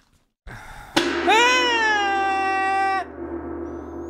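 A young man sings a loud, drawn-out note into a close microphone.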